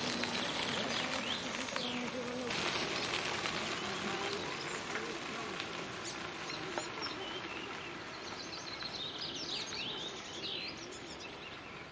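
Bicycle tyres crunch and roll over a gravel path.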